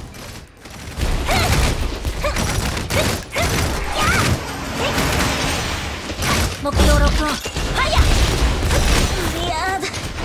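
Sword slashes and impacts crack in quick bursts.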